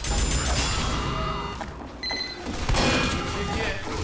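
An automated gun turret fires rapid bursts in a game.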